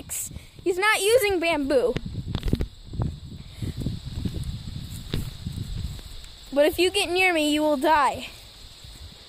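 A young boy shouts excitedly nearby.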